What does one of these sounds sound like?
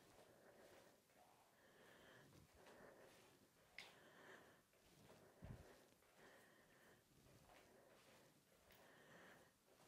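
Bare feet thud softly on a mat.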